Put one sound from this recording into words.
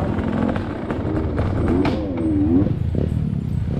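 A motorbike engine revs, its whine rising and falling in pitch.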